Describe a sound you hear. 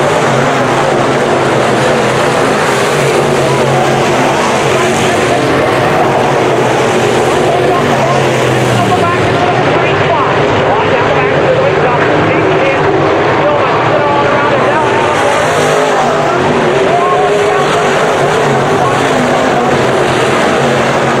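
Engines rise and fall in pitch as cars pass close by.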